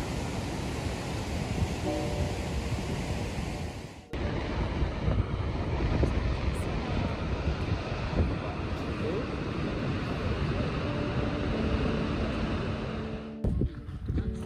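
A large waterfall roars and thunders close by.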